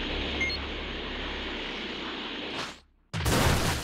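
An energy aura whooshes and roars steadily.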